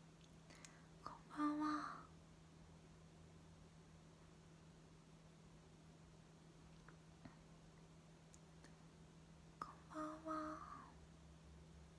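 A young woman speaks briefly and softly, close to a microphone.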